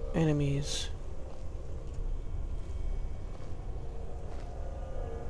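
A magic spell hums with a low, steady drone.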